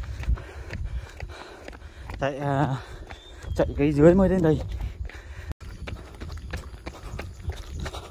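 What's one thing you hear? Running footsteps slap steadily on an asphalt road.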